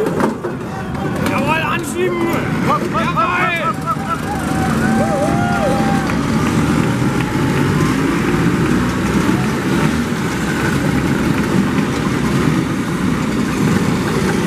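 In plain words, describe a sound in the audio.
Scooter engines start up and rev loudly.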